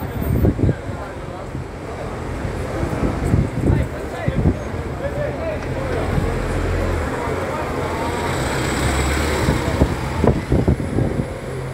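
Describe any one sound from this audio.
A bus engine rumbles close by as it pulls past.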